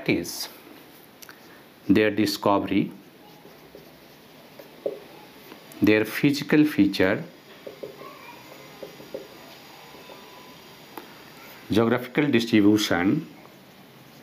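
A man speaks calmly in short phrases, close to a microphone.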